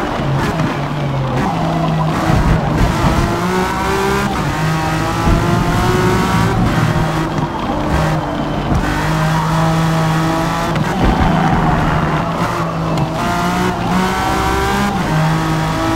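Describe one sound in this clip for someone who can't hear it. Tyres squeal on the track through the corners.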